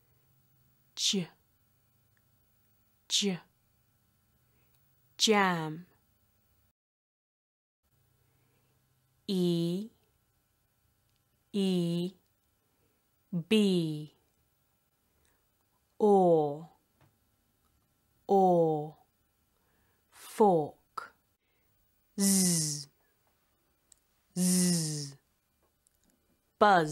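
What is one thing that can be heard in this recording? A young woman says single speech sounds and short words slowly and clearly, close to a microphone, with pauses in between.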